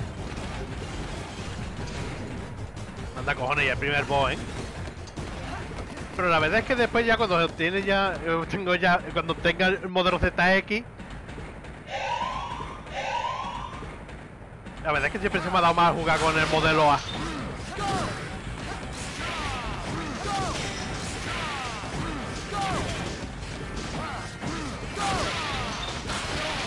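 Electronic game sound effects zap and whoosh in quick bursts.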